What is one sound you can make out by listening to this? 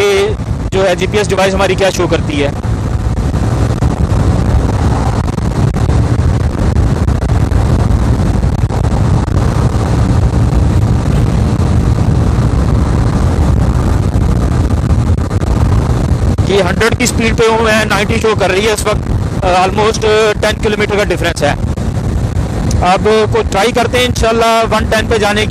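A motorcycle engine drones steadily as it speeds along a road.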